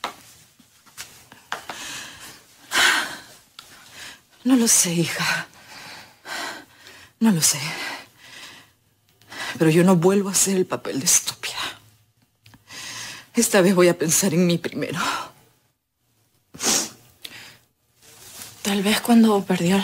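A woman speaks with strong emotion, close by.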